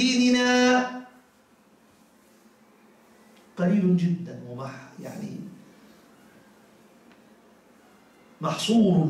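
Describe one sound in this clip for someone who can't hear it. A middle-aged man preaches through a microphone, speaking in drawn-out phrases with long pauses.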